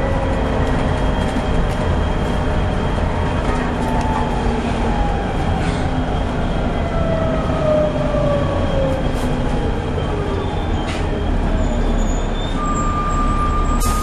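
A bus engine rumbles and whines steadily while driving.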